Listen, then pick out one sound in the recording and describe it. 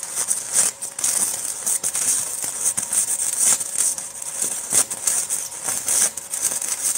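An electric arc welder crackles and sizzles steadily up close.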